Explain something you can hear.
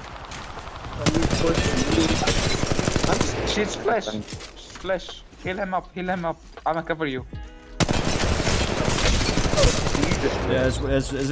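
Gunfire bursts rapidly in a video game.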